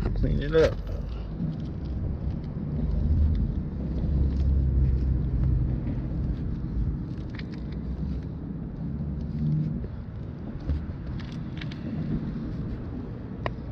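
A cloth rubs and squeaks softly over a smooth car surface.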